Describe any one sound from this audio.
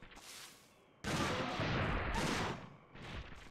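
A gun fires a rapid, loud burst of shots.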